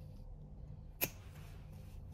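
Pliers snip through a rubber strip with a sharp click.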